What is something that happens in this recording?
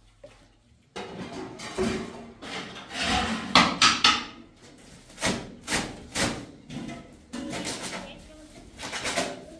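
A scoop scrapes and knocks inside a plastic basin of dry plaster.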